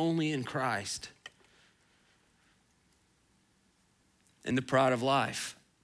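A man speaks calmly through a microphone in a large hall, with pauses.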